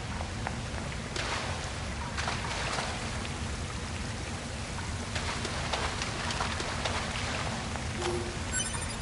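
Swords swish and clash in a fight.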